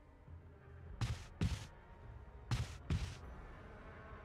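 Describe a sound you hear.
Footsteps thud along a corridor.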